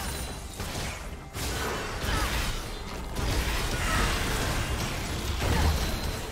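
Video game spell effects whoosh and blast during a fast fight.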